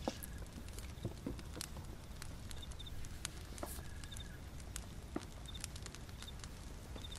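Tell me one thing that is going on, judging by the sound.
A fire crackles and pops softly.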